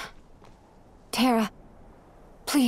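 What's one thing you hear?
A young woman calls out anxiously nearby.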